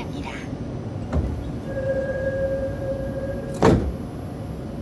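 Train doors slide shut with a thud.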